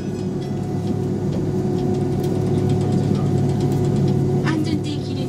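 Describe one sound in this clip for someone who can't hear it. An airplane rumbles as it taxis along the runway.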